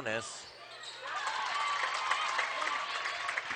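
A crowd cheers loudly in an echoing gym.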